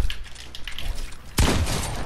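A pickaxe strikes with sharp knocks.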